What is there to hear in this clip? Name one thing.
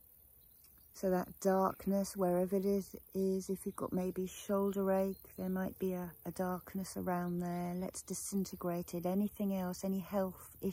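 A middle-aged woman speaks calmly and softly close by.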